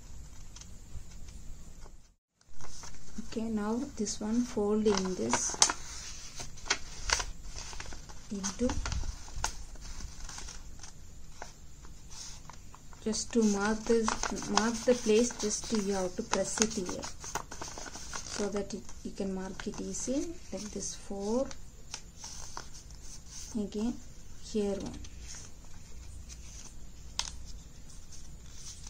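Paper rustles and crinkles as it is folded by hand.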